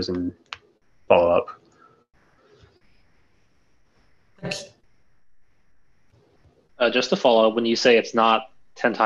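A young man speaks casually over an online call, with pauses.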